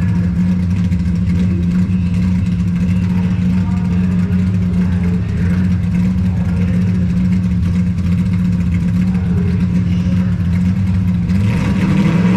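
A drag racing car's engine idles with a deep, loud rumble.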